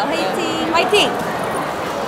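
A young woman claps her hands.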